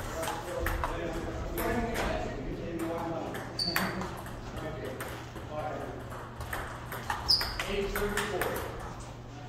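A ping pong ball clicks back and forth off paddles and a table in an echoing hall.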